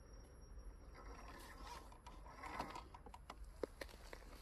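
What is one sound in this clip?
Plastic tyres scrape and click on rough rock.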